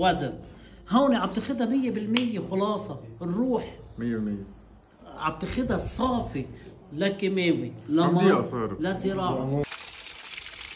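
An elderly man speaks calmly and earnestly close by.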